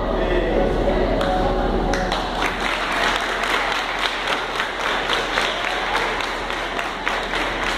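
A man speaks in an echoing hall.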